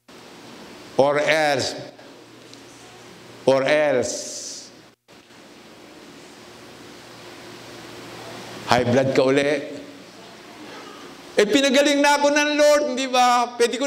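An elderly man speaks with long pauses through a microphone in a reverberant hall.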